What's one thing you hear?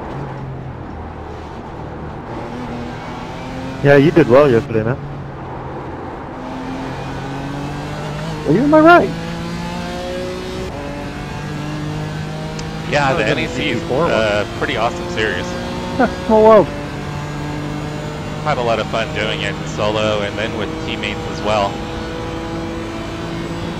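A racing car engine drones steadily, its pitch rising and falling with gear changes.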